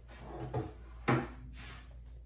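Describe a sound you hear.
A wooden board knocks as it is set down on a stand.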